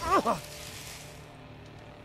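A man cries out loudly.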